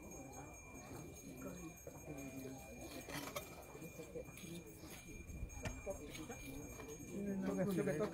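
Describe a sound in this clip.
Several adults talk quietly nearby outdoors.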